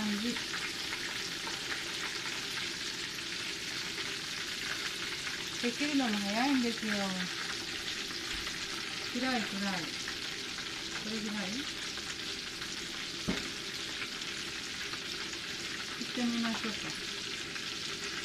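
Breaded pork cutlets sizzle and crackle as they deep-fry in hot oil.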